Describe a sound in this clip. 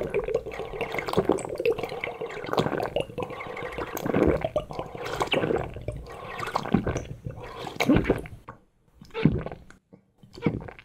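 A man slurps and sips a drink noisily up close.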